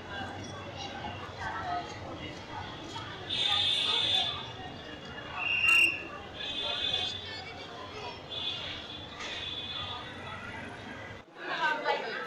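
Many voices chatter outdoors on a busy street.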